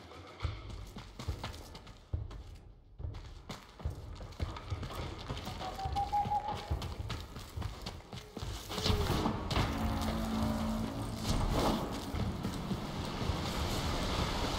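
Quick footsteps thud on rough ground.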